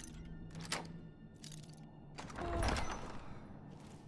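A lock clicks open.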